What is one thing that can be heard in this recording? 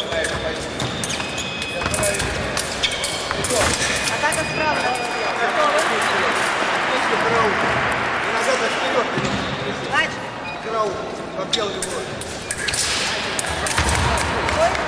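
Sport shoes squeak and thump on a hard floor in a large echoing hall.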